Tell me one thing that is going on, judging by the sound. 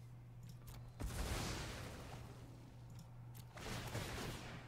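A game's magic effect whooshes and crackles.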